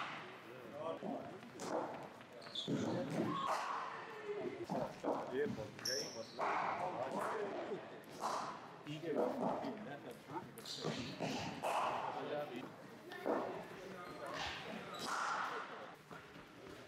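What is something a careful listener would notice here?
Men talk and call out nearby.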